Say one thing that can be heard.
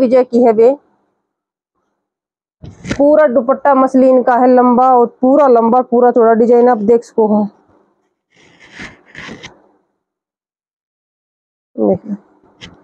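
A woman speaks close by, with animation.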